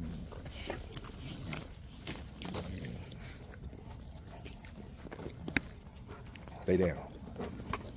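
Dogs growl and snarl as they wrestle close by.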